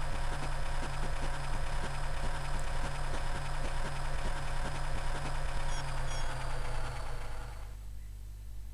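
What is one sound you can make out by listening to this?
Chiptune video game music plays with a quick, steady beat, then fades out.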